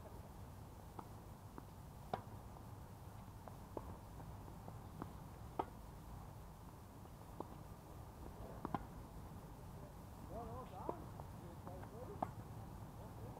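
Tennis balls are struck with rackets, with sharp pops across an open court.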